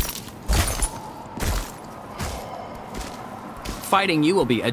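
Heavy armoured footsteps thud and crunch on ice.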